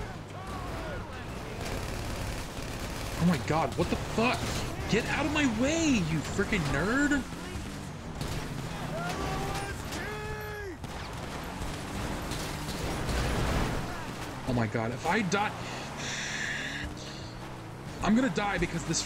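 A car engine roars as it drives over rough dirt.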